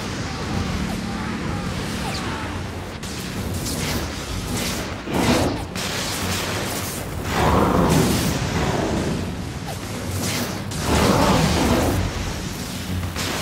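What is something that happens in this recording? Explosions boom and rumble in bursts.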